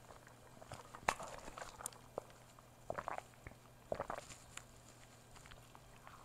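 A woman sips a drink through a straw.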